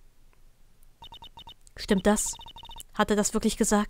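Short electronic beeps tick rapidly.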